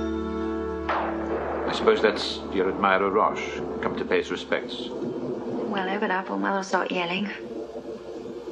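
A young woman speaks softly and warmly close by.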